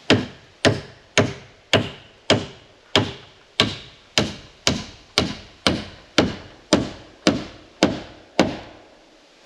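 A hammer drives nails into wooden framing with steady, ringing blows.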